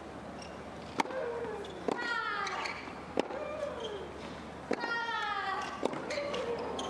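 A tennis ball is struck hard by rackets in a rally.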